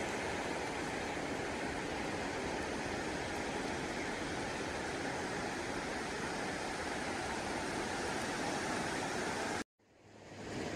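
Waves wash softly onto a shore in steady wind.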